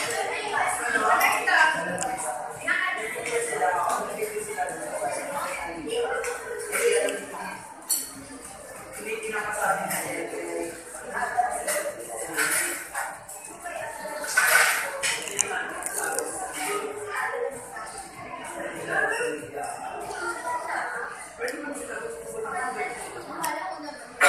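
Cutlery clinks against plates.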